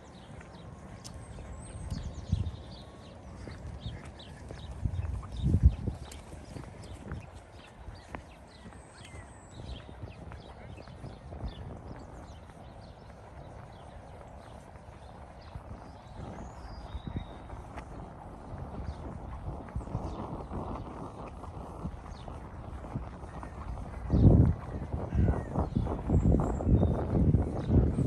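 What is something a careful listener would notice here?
Wind gusts buffet the microphone outdoors.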